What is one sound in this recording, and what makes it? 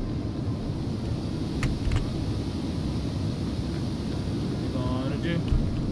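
A rubber tyre rolls and thumps along the ground.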